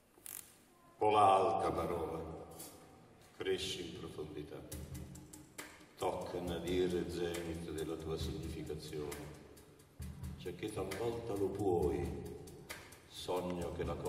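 An elderly man reads out loud through a microphone in an echoing hall.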